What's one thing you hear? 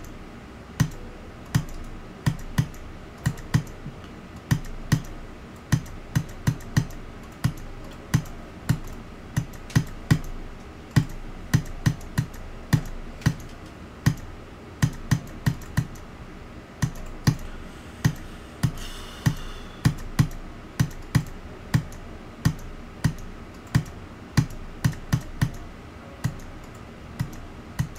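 Electronic dance music plays with a fast, steady thumping beat.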